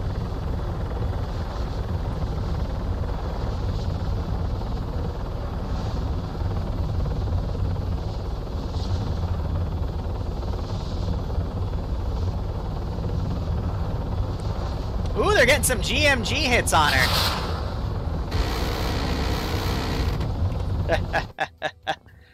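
A helicopter engine and rotor drone steadily from close by.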